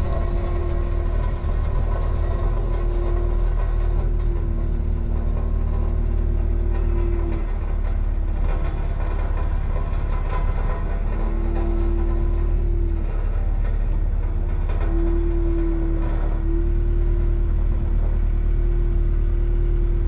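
Hydraulics whine as an excavator arm moves, rising and falling in pitch.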